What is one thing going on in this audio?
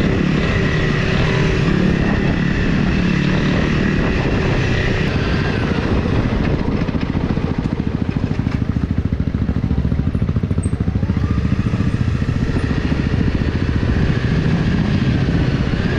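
Tyres crunch over a gravel dirt track.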